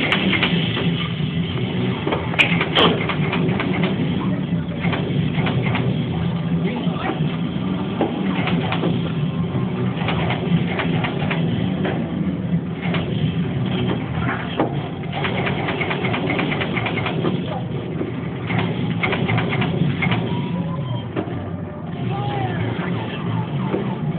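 An arcade shooting game blasts loud gunfire through its speakers.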